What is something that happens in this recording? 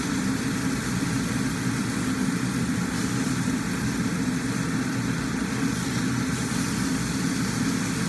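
A range hood fan hums steadily.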